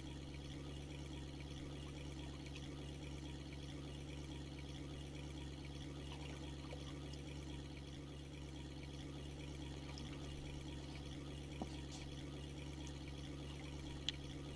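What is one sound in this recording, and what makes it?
A boat motor idles with a steady low hum.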